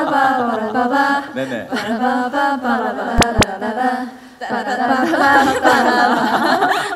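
Young women talk with animation through microphones.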